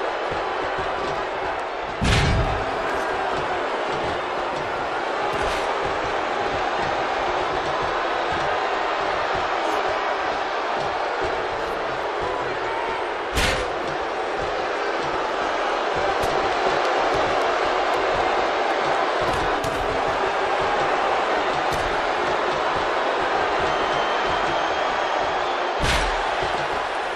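A large crowd cheers and roars steadily throughout.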